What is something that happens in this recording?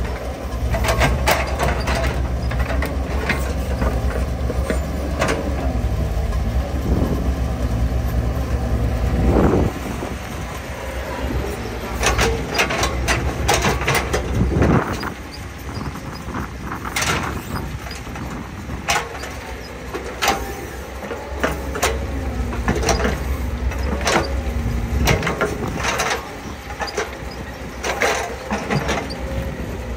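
An excavator engine rumbles steadily outdoors.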